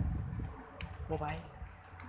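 Scissors snip through plastic.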